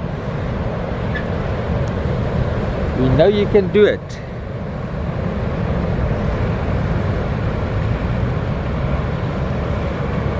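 A boat's outboard motor hums steadily.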